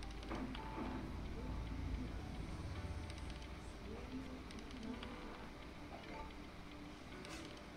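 A die rattles briefly as it is rolled.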